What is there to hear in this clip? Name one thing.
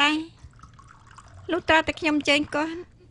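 Tea pours into a cup.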